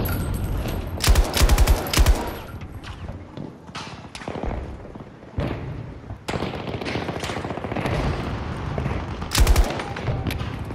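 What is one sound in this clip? Loud rifle shots crack in sharp bursts.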